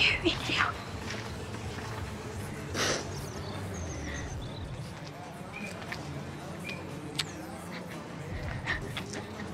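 A young girl sobs and sniffles close by.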